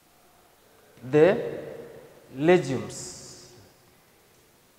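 A man speaks clearly in short phrases, as if teaching, close by.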